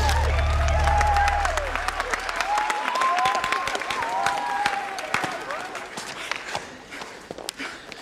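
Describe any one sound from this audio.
Hands clap in a crowd.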